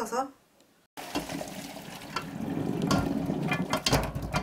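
Hot water gushes and splashes as it is poured out.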